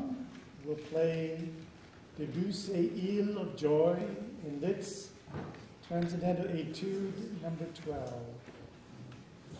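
An older man reads aloud calmly into a microphone in an echoing room.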